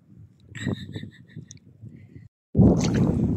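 A hand digs in wet sand.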